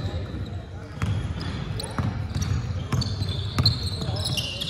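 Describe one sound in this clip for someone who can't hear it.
A basketball bounces on a hardwood court in an echoing hall.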